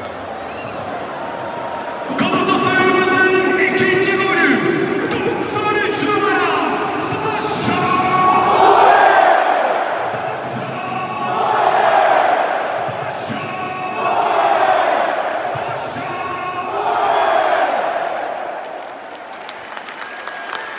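A large crowd roars and cheers all around, echoing through an open stadium.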